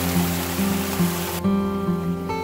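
Water splashes steadily from a pipe onto rocks.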